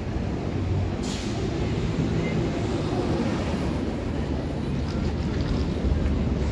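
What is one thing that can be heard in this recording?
A truck drives past nearby.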